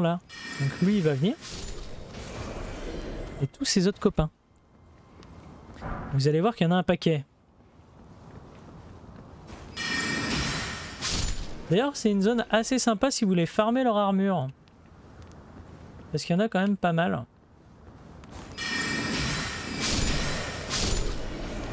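A magic spell whooshes as it is cast.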